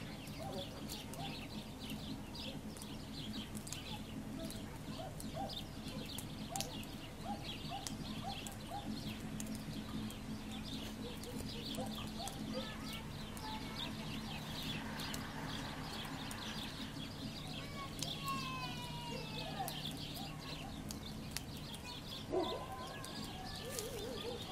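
Small birds chirp and twitter nearby.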